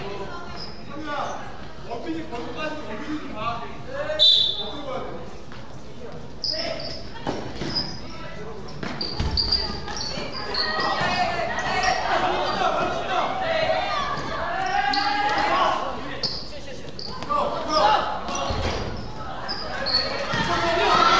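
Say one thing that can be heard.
A crowd of spectators shouts and cheers, echoing in a large hall.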